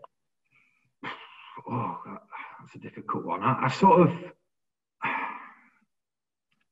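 A middle-aged man speaks warmly over an online call.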